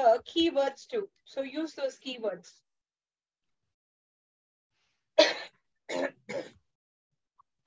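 A young woman speaks calmly through a microphone over an online call.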